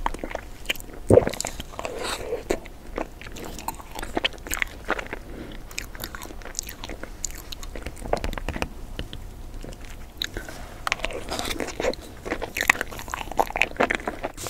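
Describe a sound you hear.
A young woman chews and smacks her lips close to the microphone.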